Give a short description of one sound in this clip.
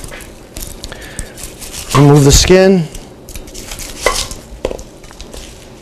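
A knife cuts on a wooden board.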